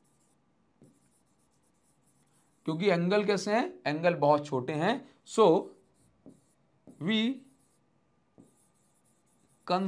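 A marker scratches softly across a board.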